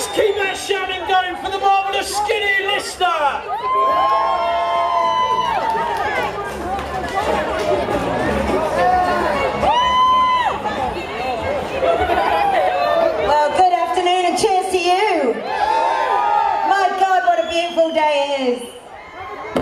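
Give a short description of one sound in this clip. A loud crowd cheers and whoops outdoors.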